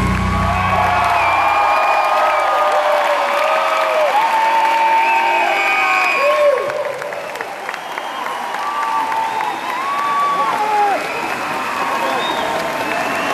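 A large crowd cheers and whistles loudly in a big echoing hall.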